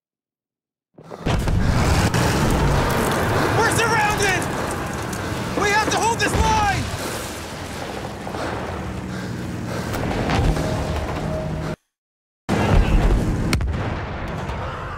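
Distant gunfire and explosions rumble steadily.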